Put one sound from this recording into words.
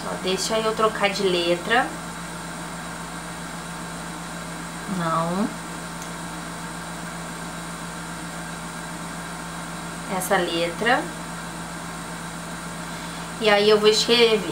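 A young woman speaks calmly in short bursts, close to a microphone.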